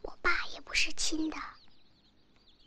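A young girl speaks softly and close by.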